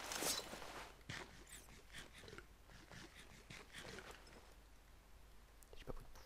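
Blocks crack and crumble as they are broken.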